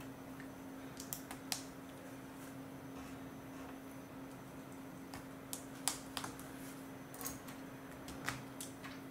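Plastic toy bricks click and snap together.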